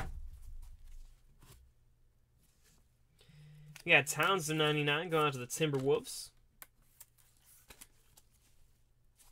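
Trading cards rustle and slide against each other in gloved hands.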